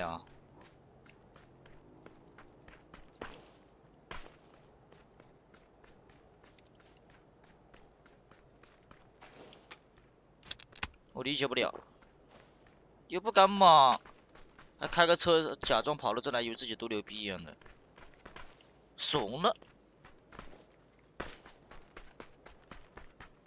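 Footsteps patter quickly over dry ground.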